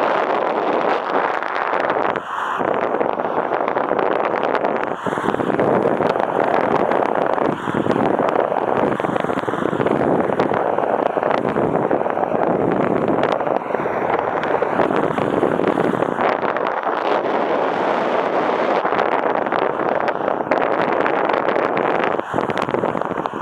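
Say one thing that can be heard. Wind rushes loudly and steadily past a microphone, outdoors high in the air.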